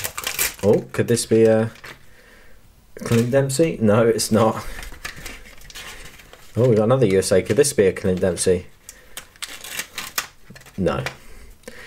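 Foil packets crinkle and rustle in hands.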